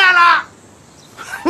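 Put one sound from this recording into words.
An elderly man speaks in a pleading voice, close by.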